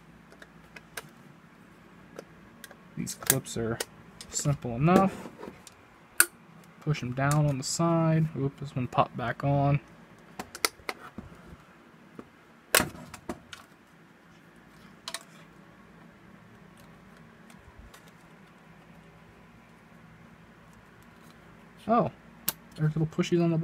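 A small screwdriver scrapes and clicks against a metal casing.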